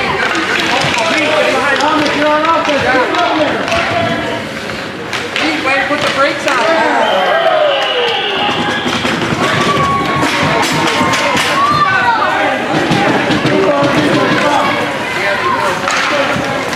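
Children shout and cheer excitedly nearby.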